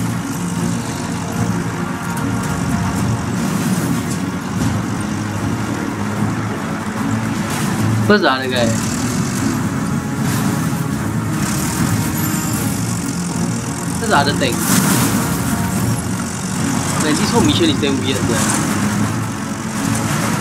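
A tank engine rumbles and its tracks clank steadily.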